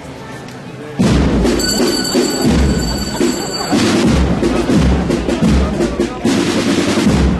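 A brass band starts playing loudly nearby.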